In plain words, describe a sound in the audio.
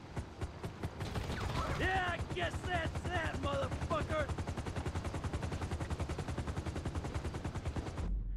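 A helicopter engine starts and its rotor beats fast and steadily.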